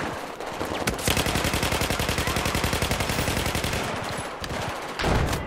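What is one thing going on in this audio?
A rifle fires rapidly in a long burst.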